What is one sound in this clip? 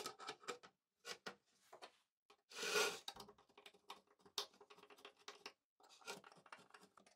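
A screwdriver scrapes and clicks against a board.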